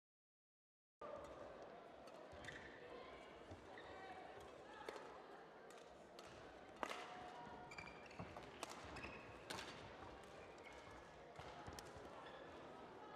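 Shuttlecock hits sharply off badminton rackets in a rally, in a large echoing hall.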